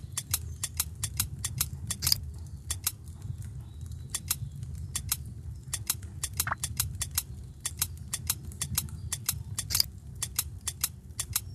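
Game stones slide across the board with short chiming clicks.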